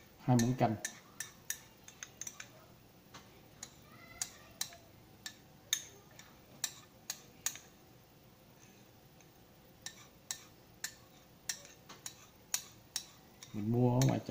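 A metal spoon clinks and scrapes against a ceramic bowl.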